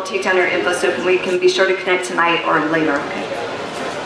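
A woman speaks calmly into a microphone over loudspeakers in an echoing room.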